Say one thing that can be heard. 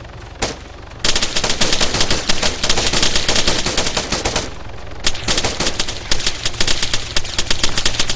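Rapid bursts of gunfire crack close by.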